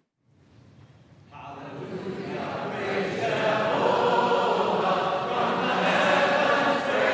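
A large congregation sings a hymn.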